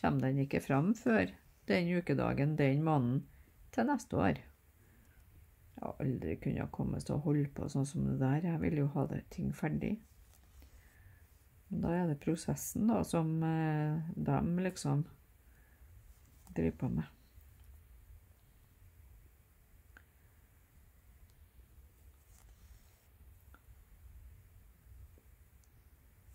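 Thread rasps softly as it is pulled through cloth.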